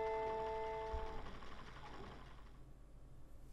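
A music box plays a few bright chiming notes that ring out and fade.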